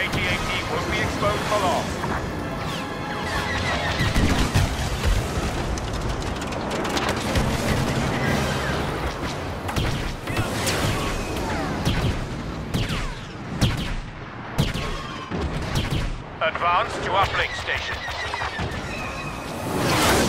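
Blaster fire zaps and crackles rapidly.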